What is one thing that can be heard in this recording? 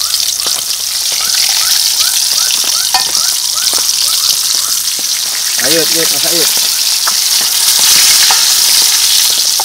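A metal spoon scrapes and stirs in a pan.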